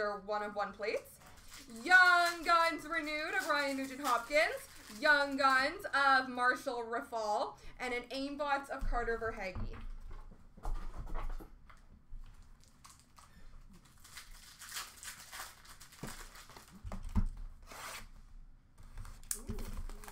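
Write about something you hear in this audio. Cardboard card packs rustle and tap as hands sort through them.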